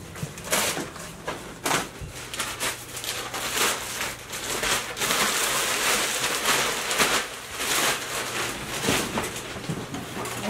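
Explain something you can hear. Bags and boxes rustle as someone rummages through them nearby.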